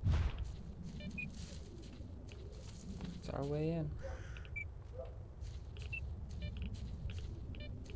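A handheld detector gives short, high electronic chirps now and then.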